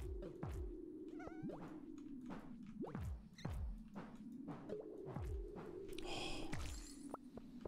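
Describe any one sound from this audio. Rocks break with sharp cracks and deep thuds, again and again.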